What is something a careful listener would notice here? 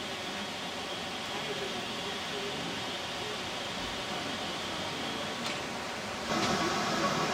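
A river rushes over rocks.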